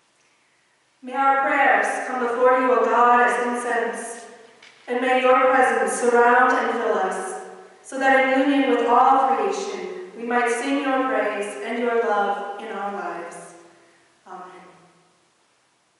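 A man sings in an echoing hall.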